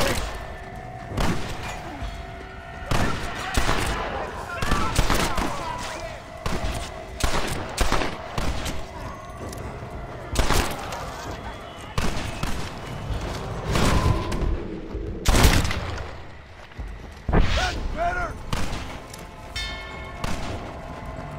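Boots thud quickly on a dirt road as a man runs.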